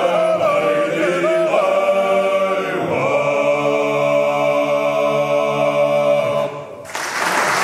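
A choir of men sings a sustained chord in a large hall.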